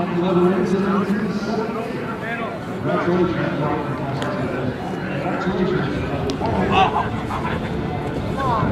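A group of young men chatter and call out nearby, outdoors.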